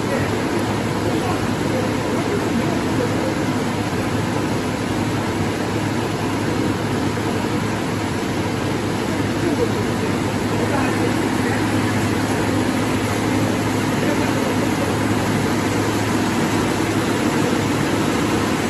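A slitting machine hums and whirs steadily as a large paper roll spins.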